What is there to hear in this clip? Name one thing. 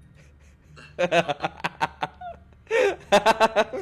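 A young man bursts out laughing close to a microphone.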